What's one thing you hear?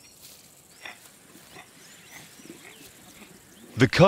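Lions growl and snarl close by.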